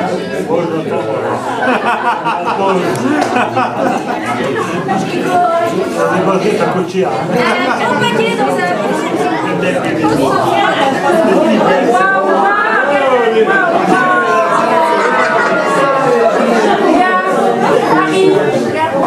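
A crowd of people chatter in a room.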